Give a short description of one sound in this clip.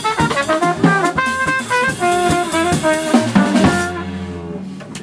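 A double bass plucks along with the band.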